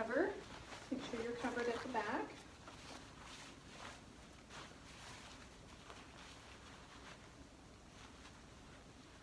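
A plastic gown rustles as it is tied.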